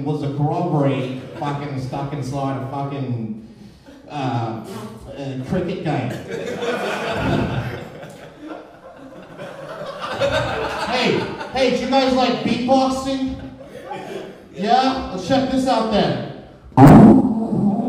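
A young man speaks animatedly into a microphone, his voice rising and falling.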